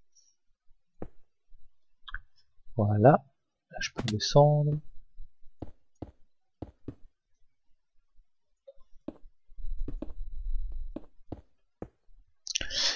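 Stone blocks thud softly into place, one after another.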